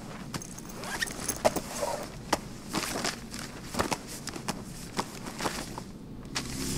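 Paper rustles as a folder is opened and pages are handled.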